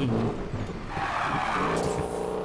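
Tyres screech as a truck drifts around a corner.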